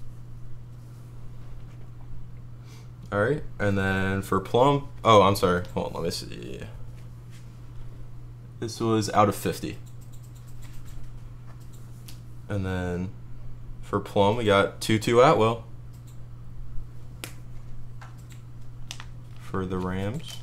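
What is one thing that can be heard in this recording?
Plastic card sleeves crinkle and rustle between hands.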